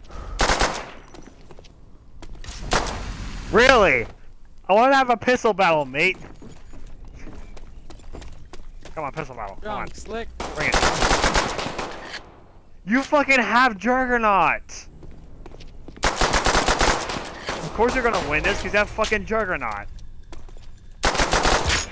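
A pistol fires rapid shots.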